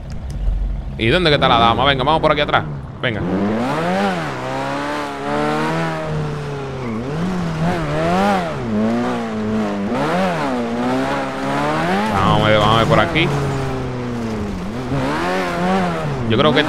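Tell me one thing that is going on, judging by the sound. A game car engine revs and roars, rising and falling in pitch.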